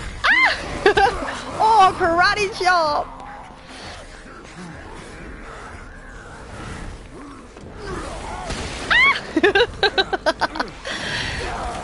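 A creature lets out high, wavering shrieks.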